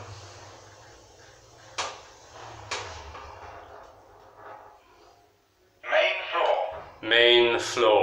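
An elevator hums faintly as it moves down.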